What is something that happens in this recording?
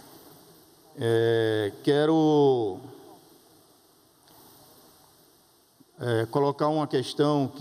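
A man speaks loudly through a loudspeaker in a large echoing hall.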